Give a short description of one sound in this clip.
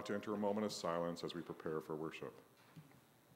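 A middle-aged man speaks calmly through a microphone in an echoing room.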